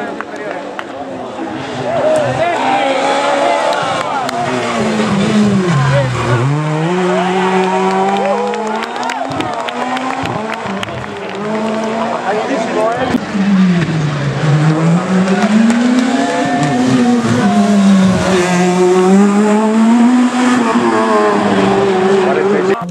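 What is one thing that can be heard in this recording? A rally car engine roars and revs up and down as the car speeds past.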